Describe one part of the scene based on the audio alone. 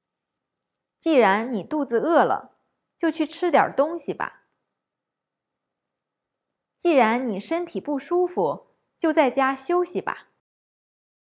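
A woman speaks clearly and slowly into a microphone.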